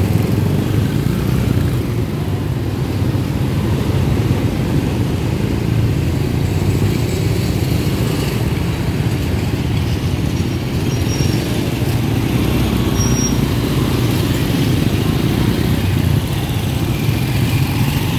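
Small motorcycles ride past.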